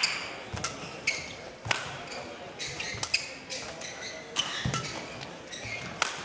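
Rackets smack a shuttlecock back and forth in a fast rally.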